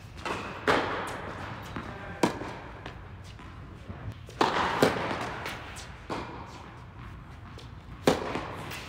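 Tennis racquets strike a ball with sharp pops, echoing in a large indoor hall.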